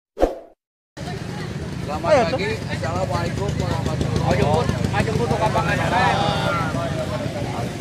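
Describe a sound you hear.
A group of men talk and chatter together outdoors.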